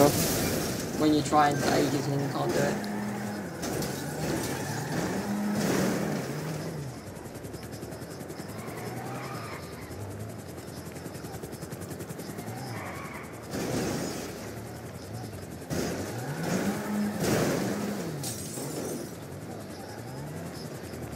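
Car engines rev and whine up and down in pitch.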